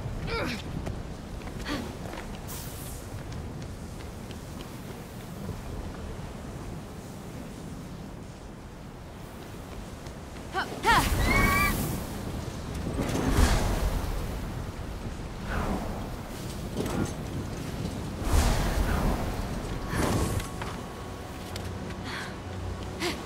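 Wind howls steadily through snowy mountains.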